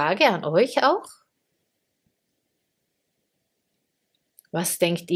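A woman speaks calmly and closely into a microphone, pausing between phrases.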